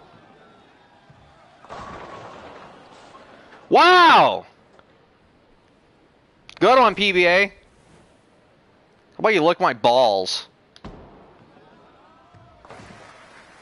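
A bowling ball rolls down a wooden lane.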